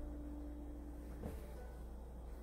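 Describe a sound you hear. A kitten lands softly on a pillow with a muffled thump.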